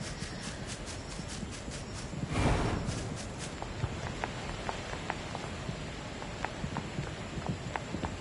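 Footsteps patter quickly while running over the ground.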